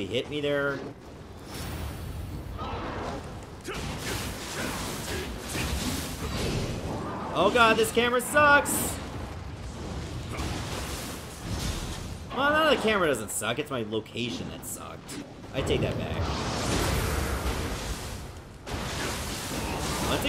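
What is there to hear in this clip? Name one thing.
Metal blades clash and slash in a fight.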